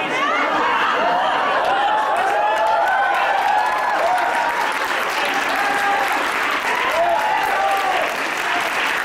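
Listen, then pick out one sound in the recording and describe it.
People in an audience cheer and whistle.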